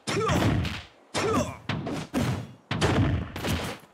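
Blows land with punchy thuds.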